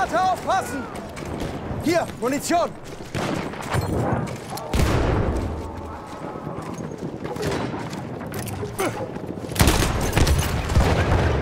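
Footsteps crunch on rubble and cobblestones.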